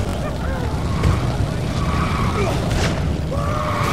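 Flames crackle and burn.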